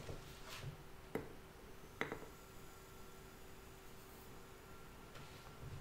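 Sugar pours softly into a glass jar.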